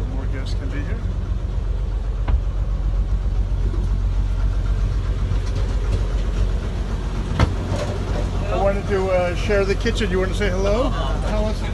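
A man speaks close by, calmly and conversationally.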